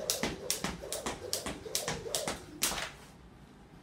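A jump rope slaps the floor in a quick rhythm.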